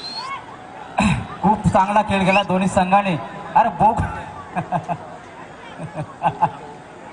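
A man speaks loudly with animation over a loudspeaker.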